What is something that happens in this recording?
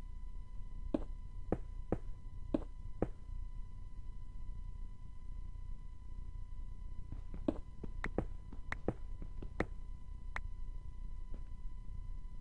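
A pickaxe chips at stone in short sharp knocks.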